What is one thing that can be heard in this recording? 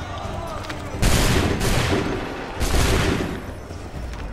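A volley of musket shots booms out.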